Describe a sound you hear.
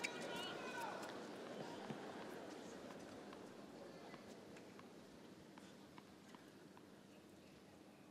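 A tennis ball bounces repeatedly on a hard court.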